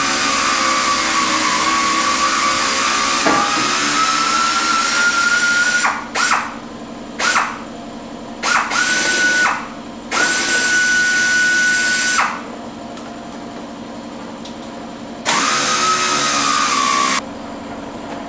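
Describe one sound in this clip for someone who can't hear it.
A power tool whirs in bursts of varying length.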